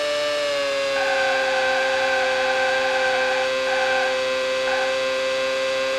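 Tyres screech in short bursts as a racing car corners.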